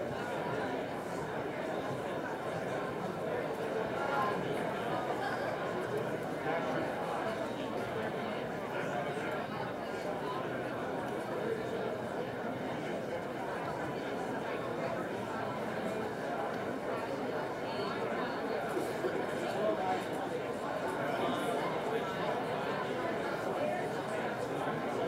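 An audience murmurs and chatters in a large room.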